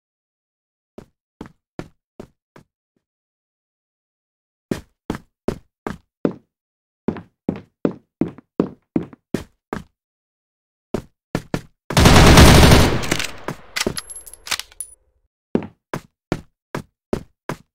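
Footsteps thud quickly and evenly on a hard floor.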